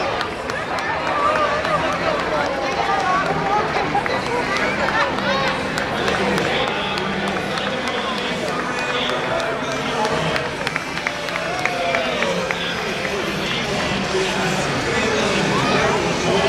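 A crowd chatters and cheers along a street outdoors.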